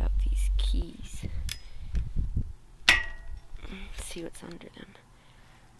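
A metal blade taps and scrapes against plastic keyboard keys.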